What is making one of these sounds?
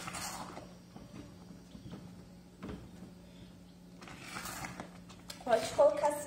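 Soft wet curds squelch and slosh as a hand squeezes them in a pot.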